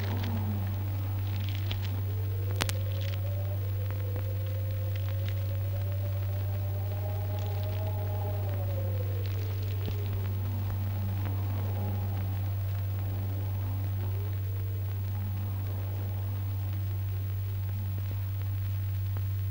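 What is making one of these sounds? A young woman sings a slow, long drawn-out melody.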